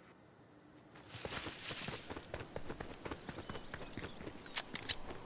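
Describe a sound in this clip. Footsteps patter quickly over rocky ground.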